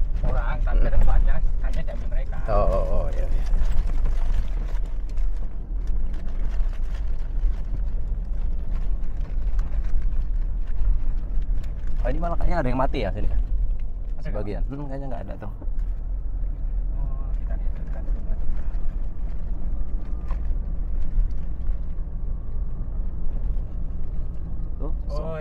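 A car engine rumbles steadily from inside the car.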